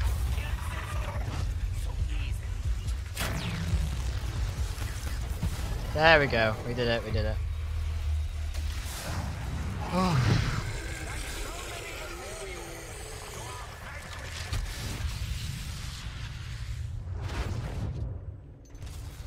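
A ray gun fires crackling energy blasts with a deep rumble.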